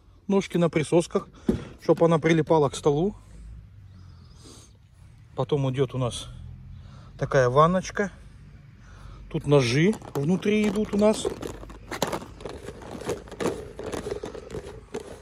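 Plastic and metal parts knock and clatter as a hand handles them.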